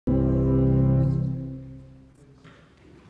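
An organ plays a held chord that fades away.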